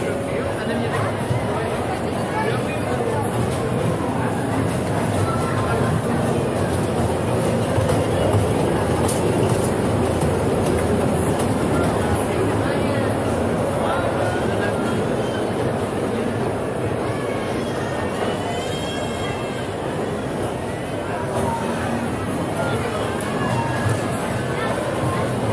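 A crowd of children and adults chatters in a large echoing hall.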